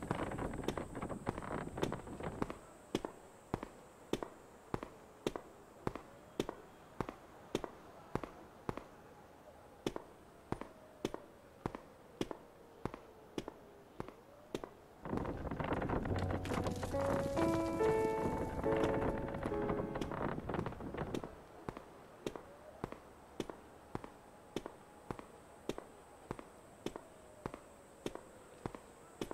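Footsteps climb stairs and walk across a hard floor at a steady pace.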